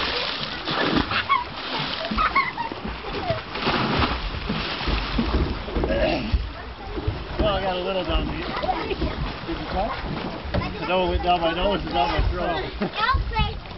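Young men shout and call out nearby, outdoors.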